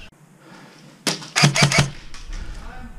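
A paintball gun fires several quick, sharp shots close by.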